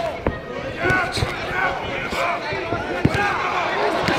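Gloved punches land with sharp thuds.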